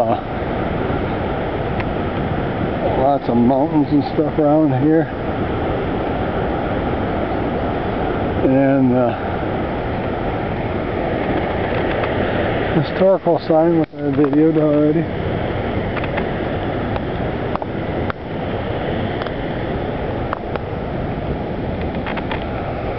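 Wind rushes steadily across the microphone outdoors.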